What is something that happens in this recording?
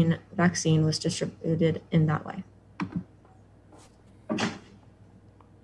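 A young woman speaks calmly through an online call.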